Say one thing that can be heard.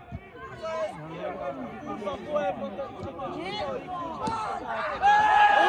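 Men shout and call out to one another across an open field.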